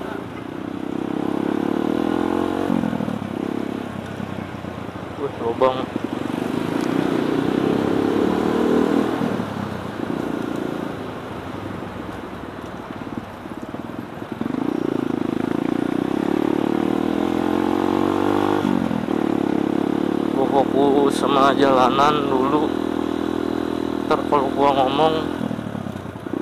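A motorcycle engine hums and revs up and down close by.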